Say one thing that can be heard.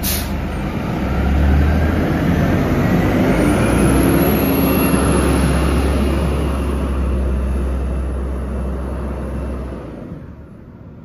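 A bus engine revs up and the bus pulls away, fading into the distance.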